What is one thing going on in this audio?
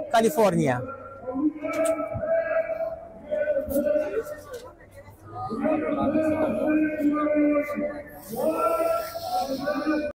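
A crowd chants together outdoors.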